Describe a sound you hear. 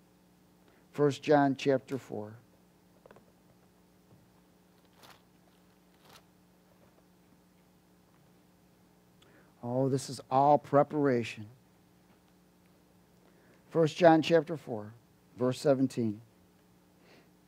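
A man reads out calmly through a microphone, in short phrases with pauses.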